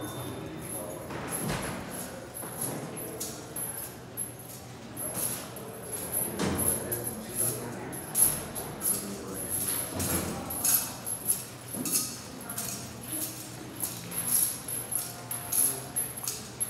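Footsteps walk across a hard floor.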